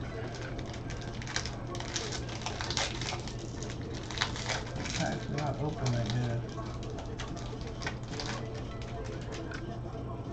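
Plastic wrapping crinkles and rustles as a pack is torn open.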